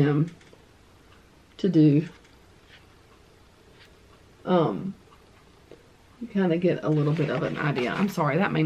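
Paper pages rustle as a workbook is handled.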